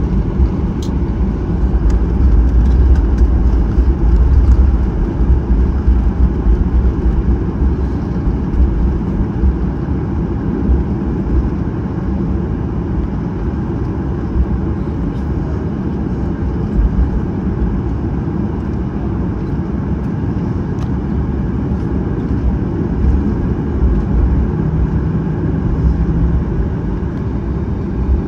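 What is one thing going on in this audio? Airliner wheels rumble over the taxiway.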